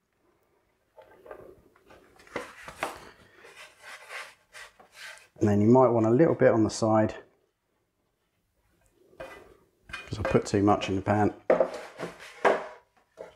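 Food scrapes against a metal pan.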